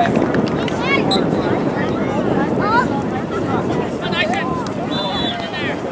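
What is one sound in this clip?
A crowd of spectators shouts and cheers from a distance.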